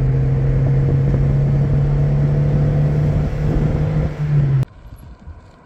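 A car engine hums and tyres roll on a paved road, heard from inside the car.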